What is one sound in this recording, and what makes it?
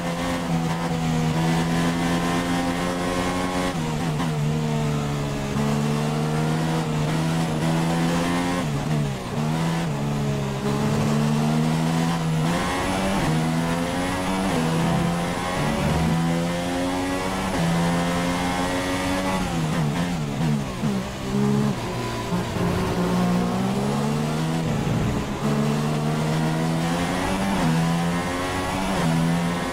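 A racing car engine screams at high revs, repeatedly climbing and dropping in pitch as it shifts gears.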